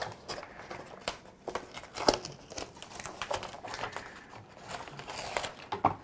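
Masking tape peels away from a plastic surface with a soft crackle.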